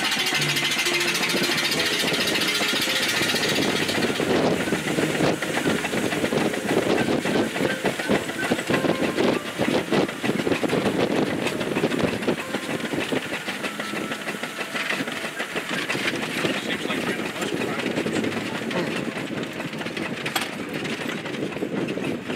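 Wind rushes past an open cab.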